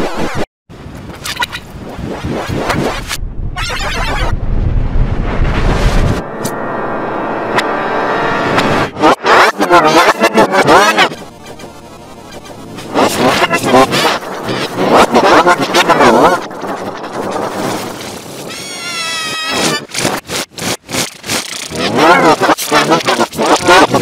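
Chiptune game music and electronic sound effects play.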